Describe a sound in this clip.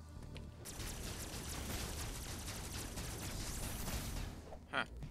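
Rapid blaster shots fire in a game.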